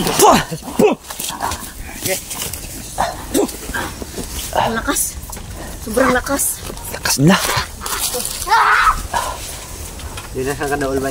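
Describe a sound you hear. Leaves and twigs rustle and snap as someone pushes through thick undergrowth.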